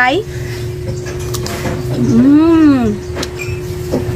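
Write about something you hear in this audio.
Crisp fruit crunches as a young woman bites and chews.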